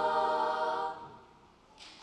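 A large choir of girls sings its last held chord in a hall with some echo.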